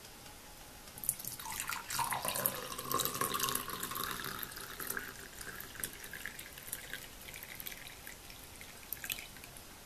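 Milk pours from a pan into a glass, gurgling and splashing as the glass fills.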